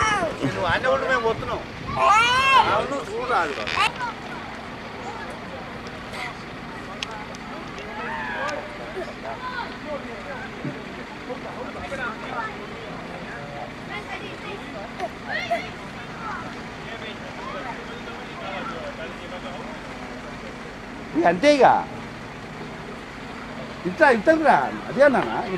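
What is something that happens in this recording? A young child calls out and chatters excitedly nearby.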